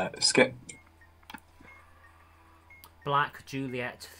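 A short electronic click sounds as a wire connection switches.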